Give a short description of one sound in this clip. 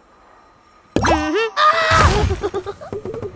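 Bubbles pop in quick bursts with bright chimes.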